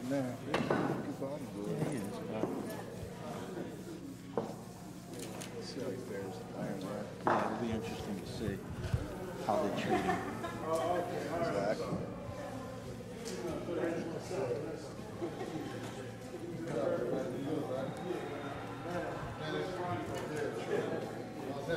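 A man talks in a close, low voice.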